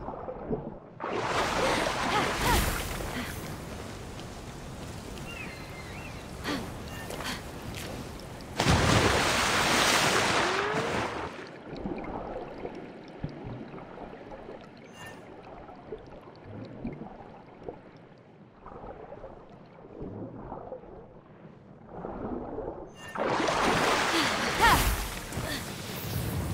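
Water splashes and rushes loudly.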